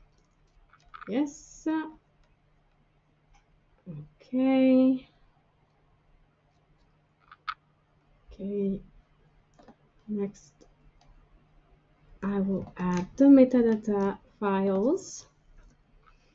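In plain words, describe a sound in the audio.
A woman speaks calmly and hesitantly into a computer microphone, with pauses.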